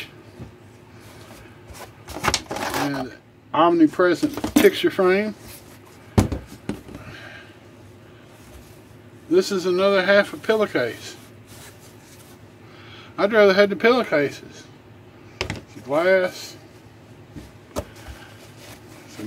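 Cloth rustles as wrapped items are handled in a cardboard box.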